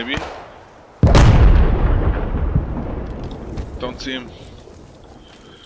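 A rifle fires a single loud shot that echoes away slowly.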